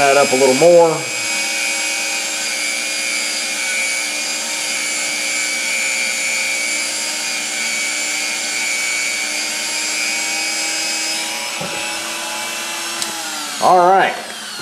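A small rotary tool whirs steadily at high speed, then winds down.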